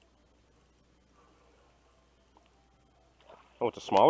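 A fishing lure plops into calm water.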